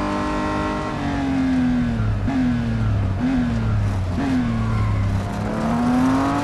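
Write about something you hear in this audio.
A racing car engine blips quickly down through the gears as it slows.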